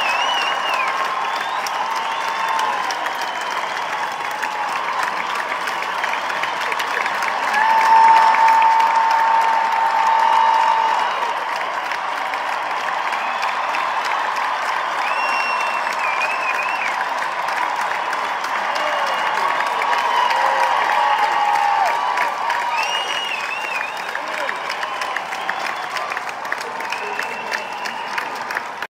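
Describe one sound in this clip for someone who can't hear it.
A large crowd claps.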